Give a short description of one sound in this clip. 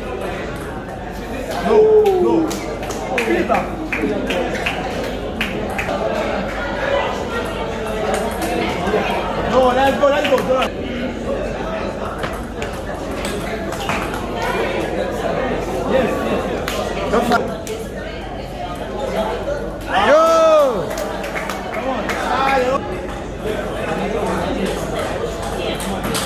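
A ping-pong ball clicks sharply back and forth between paddles and table.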